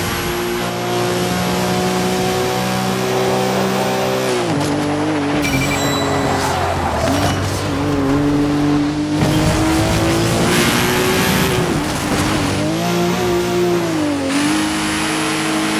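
A racing car engine roars steadily, its pitch dropping and climbing as the gears change.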